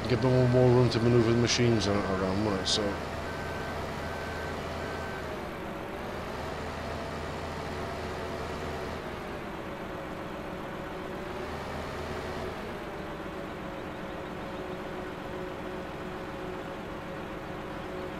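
A heavy diesel engine hums steadily, its pitch rising and falling as it works.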